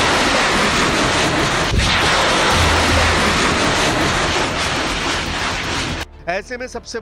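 A rocket roars loudly as it launches.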